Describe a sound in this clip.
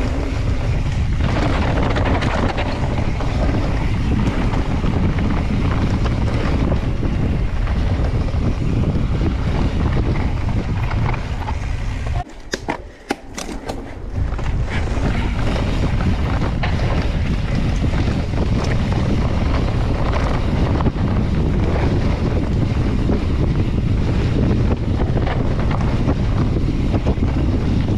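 Wind rushes over the microphone as a mountain bike speeds downhill outdoors.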